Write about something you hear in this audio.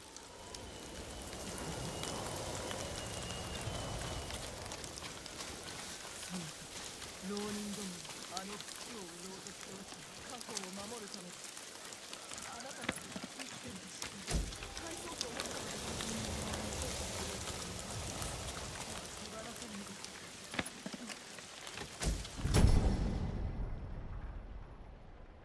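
Wind blows steadily through tall grass outdoors.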